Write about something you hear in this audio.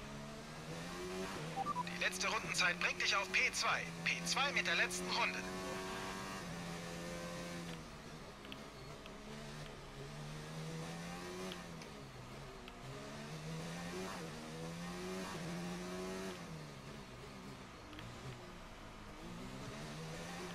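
A racing car engine whines at high pitch, rising and dropping as the gears shift.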